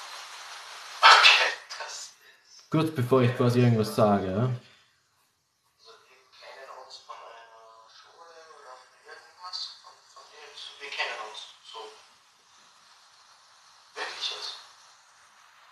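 A phone's microphone rustles as it is handled.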